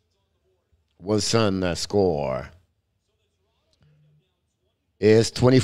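An older man speaks with animation close to a microphone.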